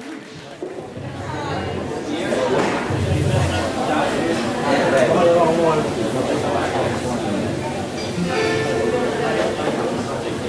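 A young woman sings into a microphone through loudspeakers.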